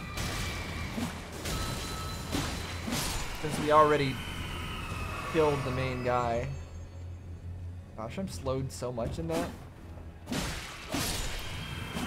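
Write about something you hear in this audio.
Swords slash and clash.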